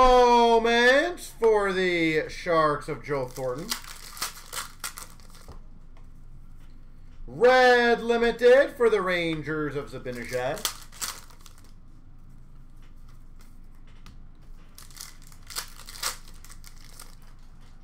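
Cards rustle and click as they are handled.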